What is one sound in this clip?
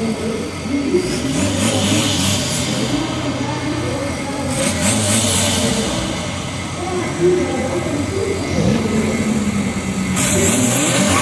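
A diesel car engine revs hard at a standstill.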